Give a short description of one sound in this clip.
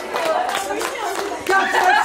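Children clap their hands.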